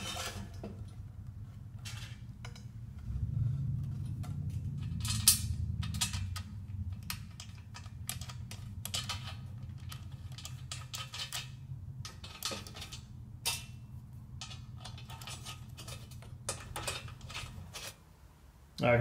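Metal parts click and tap.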